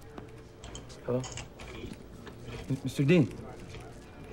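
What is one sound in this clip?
A young man talks on a phone.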